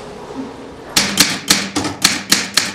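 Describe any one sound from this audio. A knitting machine clacks in a fast, steady rhythm.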